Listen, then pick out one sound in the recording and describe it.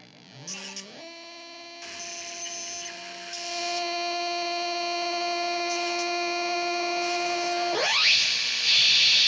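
Electronic instruments play a steady droning tone that sweeps sharply upward near the end.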